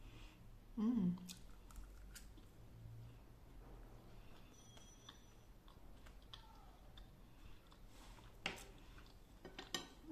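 A woman chews food quietly.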